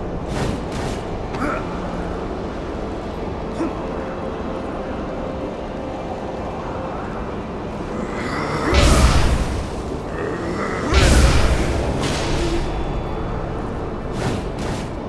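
Wind howls steadily.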